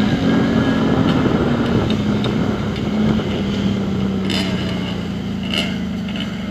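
A motorbike engine drones loudly and close by.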